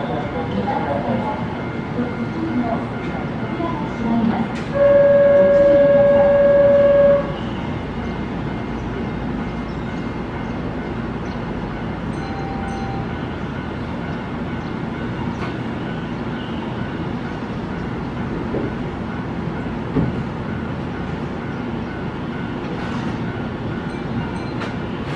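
A stopped electric train hums steadily.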